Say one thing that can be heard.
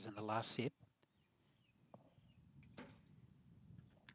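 A bowstring snaps as an arrow is released.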